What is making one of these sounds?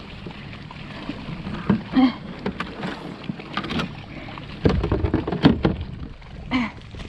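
A fish flaps and thumps against a hard plastic deck.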